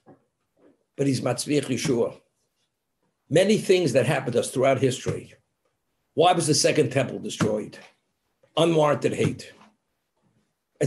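An elderly man speaks calmly through a microphone on an online call, in bursts with pauses.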